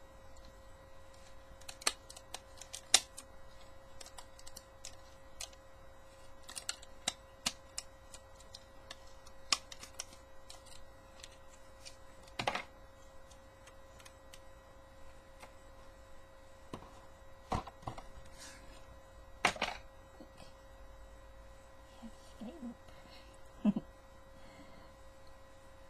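Plastic toy parts click and snap as they are twisted.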